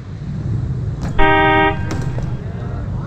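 A bicycle crashes and clatters onto pavement.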